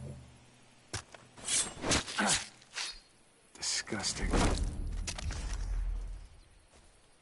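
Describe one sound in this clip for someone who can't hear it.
A knife cuts and tears wetly through an animal's hide.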